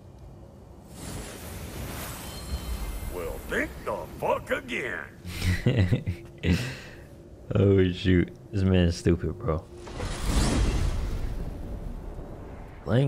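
A magic light bursts with a rushing whoosh.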